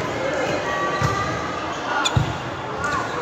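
A volleyball is struck hard with a loud smack.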